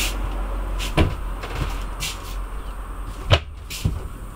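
A cupboard door creaks open and bumps shut.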